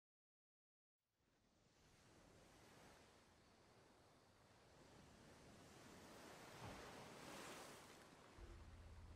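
Waves wash softly onto a shore.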